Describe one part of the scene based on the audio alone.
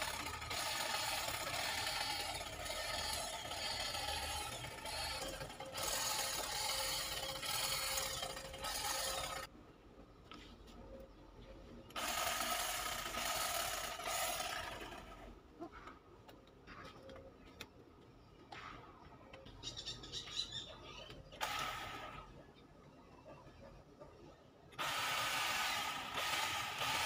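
An electric hedge trimmer buzzes loudly in bursts as it clips a shrub.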